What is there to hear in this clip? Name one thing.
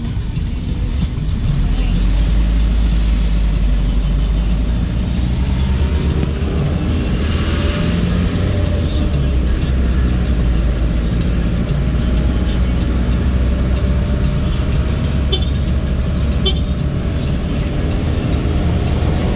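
Street traffic rumbles past outside.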